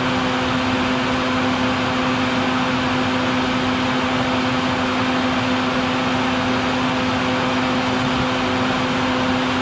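A vacuum hums steadily through a hose, with a loud rushing of air.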